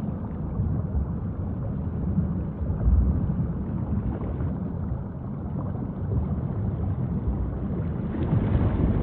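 Ocean water swells and washes with a low, steady rumble.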